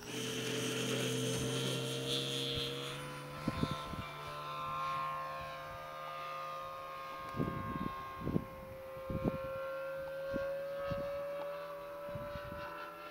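A model plane's engine whines loudly as it takes off and climbs away, its pitch shifting.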